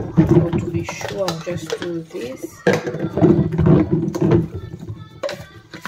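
A brush scrubs inside a plastic bottle.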